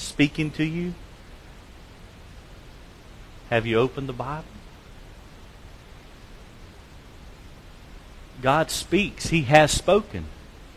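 A man speaks calmly through a microphone in a large echoing hall, with long pauses.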